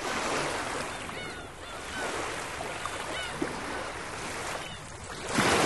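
Seabirds call now and then.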